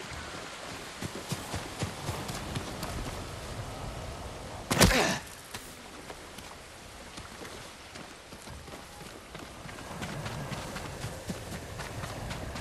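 Footsteps run through wet grass.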